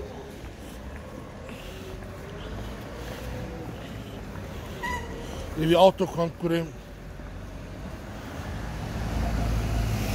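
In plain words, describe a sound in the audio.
Footsteps splash on wet pavement.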